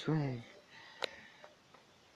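A short game menu chime sounds as a choice is confirmed.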